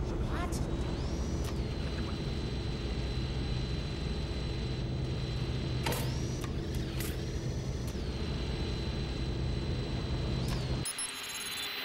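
A small toy car's electric motor whirs as it rolls along a hard floor.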